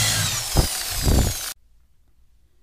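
A power drill whirs loudly, boring into wood.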